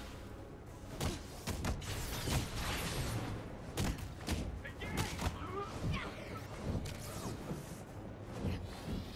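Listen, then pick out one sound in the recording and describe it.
Heavy punches and blasts thud in a fight.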